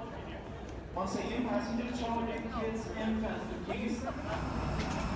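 Adults murmur and talk nearby.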